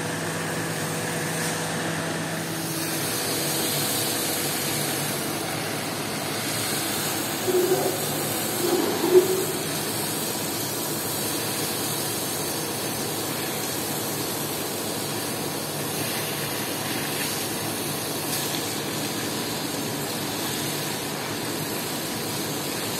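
A water hose sprays hard onto a wet floor with a steady hiss.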